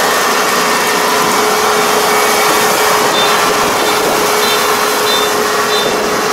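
A combine harvester engine drones steadily close by.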